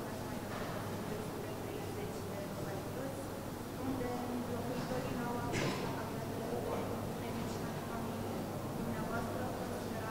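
A middle-aged man speaks calmly into microphones.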